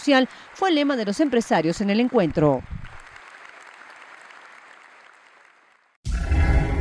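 An audience applauds, then the clapping slowly fades.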